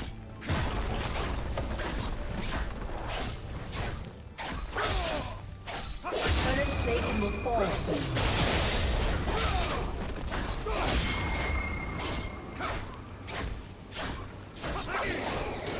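Game spells and attacks crackle and clash in quick bursts.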